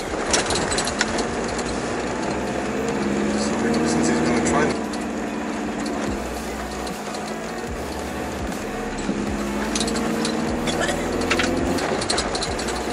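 A vehicle's engine revs up and down while driving.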